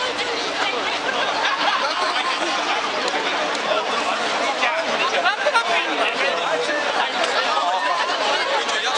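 A large crowd of men and women chatters and calls out loudly outdoors.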